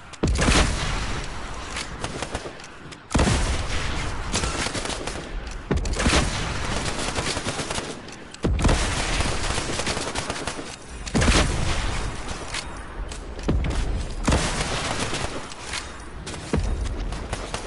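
Explosions roar and rumble after each blast.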